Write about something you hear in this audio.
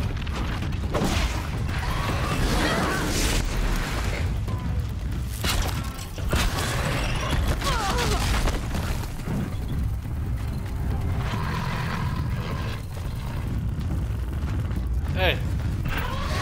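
Heavy blows and blasts crash during a fight with a large machine creature.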